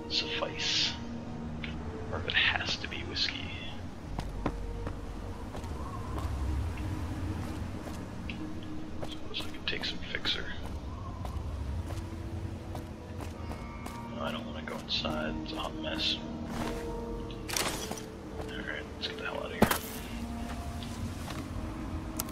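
Footsteps scuff and crunch on rubble and concrete.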